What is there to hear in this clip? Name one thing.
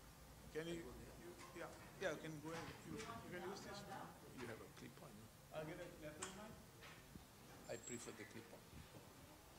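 An elderly man speaks into a microphone over loudspeakers in an echoing hall.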